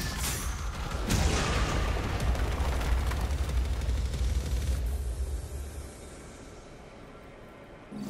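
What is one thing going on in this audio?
A huge explosion booms and rumbles.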